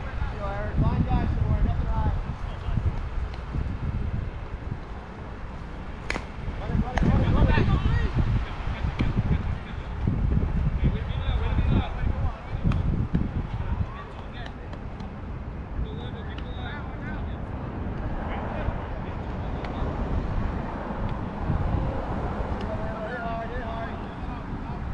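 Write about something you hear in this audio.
Players call out to each other across an open field, far off.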